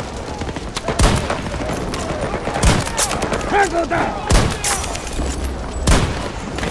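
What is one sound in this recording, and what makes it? A rifle fires loud sharp shots several times.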